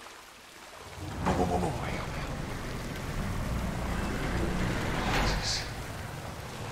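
Water splashes around wading legs.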